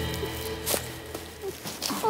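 Dry grass rustles as someone moves through it.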